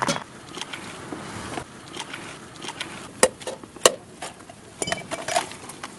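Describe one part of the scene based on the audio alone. A knife taps and cracks an eggshell.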